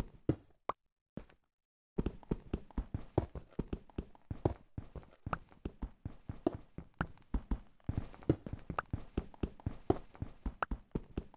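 Rapid, crunchy taps of blocks being dug out clatter steadily.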